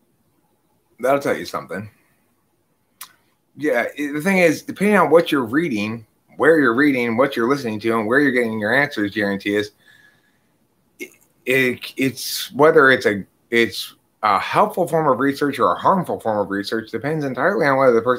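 A middle-aged man speaks calmly and with feeling, close to a microphone.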